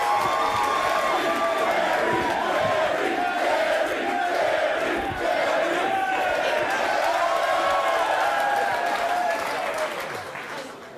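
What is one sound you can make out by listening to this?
A large crowd shouts and chants loudly.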